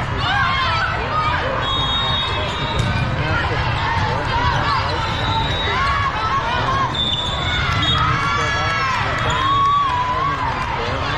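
Many girls and young women shout and chatter around a court in a large echoing hall.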